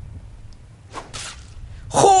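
A large creature's leg stabs down with a wet squelch.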